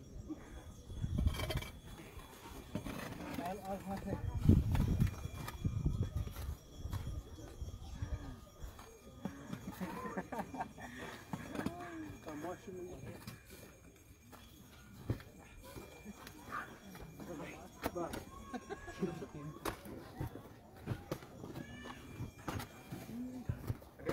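Men talk nearby outdoors.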